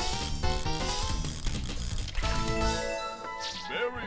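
A cheerful electronic jingle plays.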